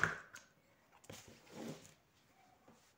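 A plastic ruler slides and taps on paper.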